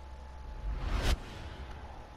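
A rushing whoosh swells and cuts off sharply.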